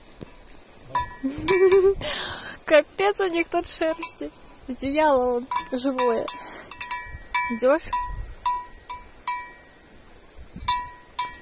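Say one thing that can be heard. A bell on a sheep's collar clinks.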